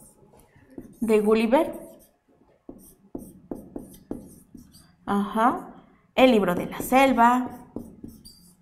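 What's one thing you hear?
A woman speaks slowly and clearly, as if dictating.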